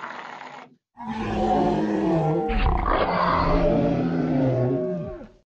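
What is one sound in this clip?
A woman screams loudly.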